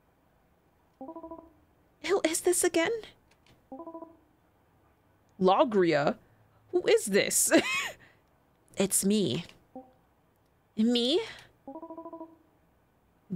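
Short electronic beeps chirp in bursts.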